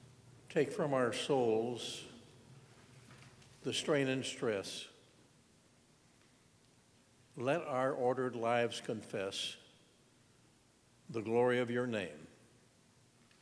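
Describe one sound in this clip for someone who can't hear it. An elderly man reads aloud in short phrases, heard through a microphone in a large echoing room.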